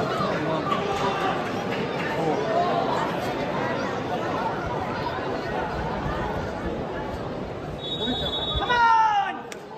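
A crowd of spectators chatters nearby, outdoors.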